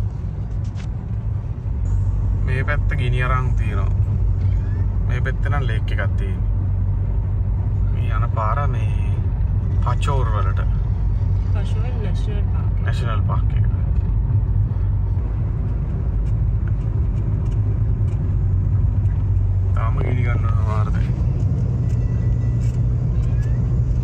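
A car engine hums low and steady.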